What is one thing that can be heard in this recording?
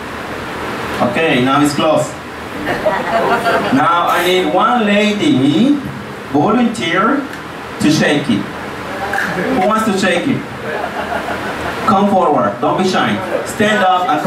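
A man speaks with animation into a microphone, heard over a loudspeaker.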